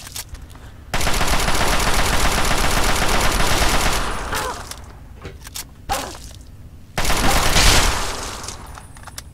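Gunfire rattles loudly in rapid bursts.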